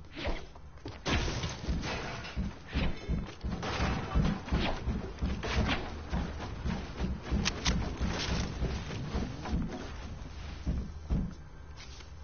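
Wooden walls clatter into place one after another.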